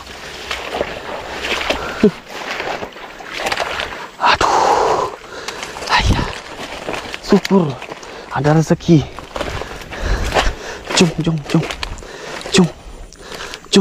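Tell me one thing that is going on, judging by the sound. Dry leaves and grass rustle as someone pushes through undergrowth.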